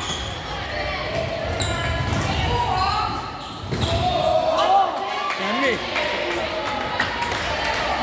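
A ball thuds against the floor.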